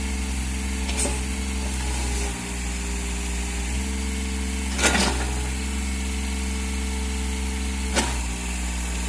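A steel excavator bucket scrapes and knocks against rubble.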